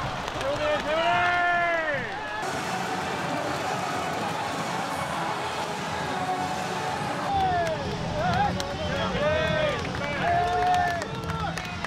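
A large crowd cheers and chants in a big stadium.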